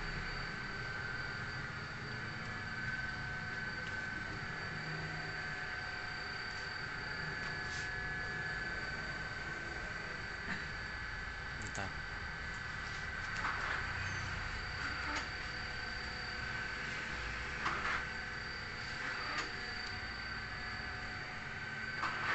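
Printers hum and whir steadily.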